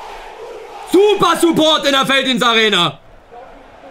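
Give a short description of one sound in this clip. A young man shouts loudly and drawn-out, close to a microphone.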